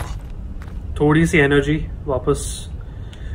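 A young man speaks briefly, close to a microphone.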